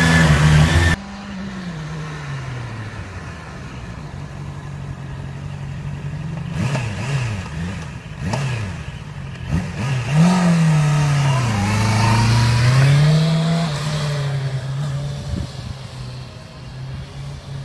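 A motorcycle engine rises and falls in pitch outdoors.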